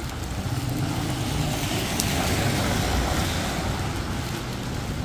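A car passes by on a wet road.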